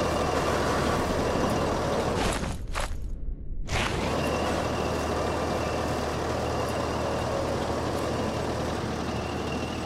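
Soft footsteps rustle through grass.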